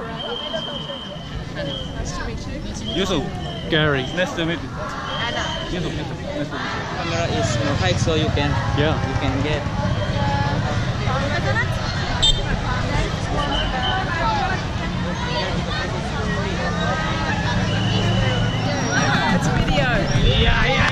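A crowd chatters and calls out loudly outdoors.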